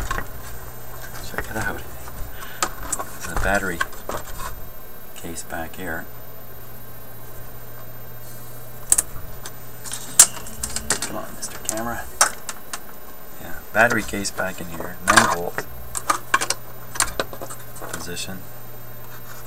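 Hands knock and click against a wooden box while handling it.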